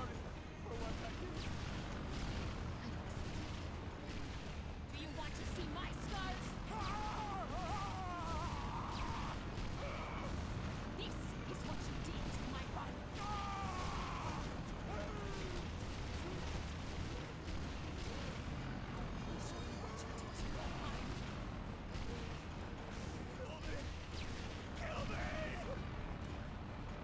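A heavy gun fires in bursts.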